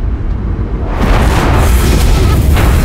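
A fire roars and whooshes up.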